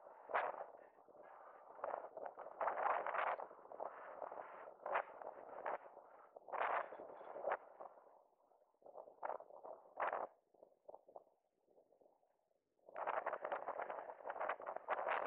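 Running footsteps slap on pavement outdoors.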